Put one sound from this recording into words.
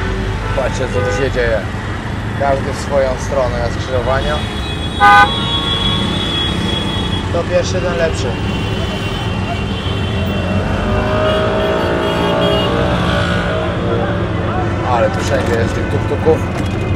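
An auto rickshaw engine rattles and hums steadily.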